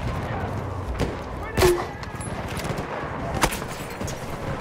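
Gunfire cracks in a game battle.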